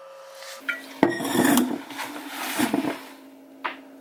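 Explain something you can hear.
A young woman breathes out heavily after drinking.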